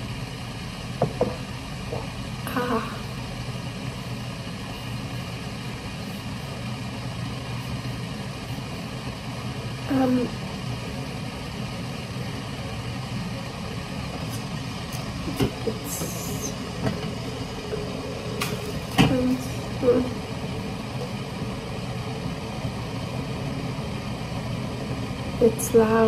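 A woman speaks softly and briefly, close by, with long pauses.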